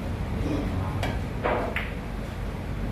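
Billiard balls click together on a pool table.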